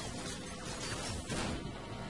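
Automatic rifle gunfire rattles.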